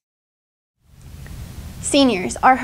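A teenage girl talks cheerfully through a microphone.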